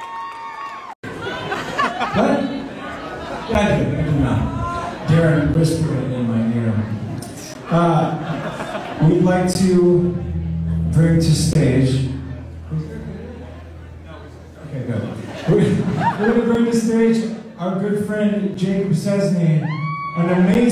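A man talks into a microphone through loudspeakers in a large echoing hall.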